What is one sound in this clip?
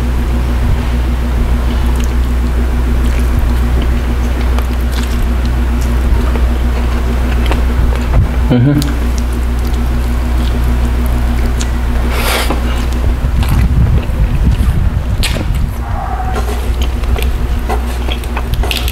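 A man chews food noisily close to a microphone.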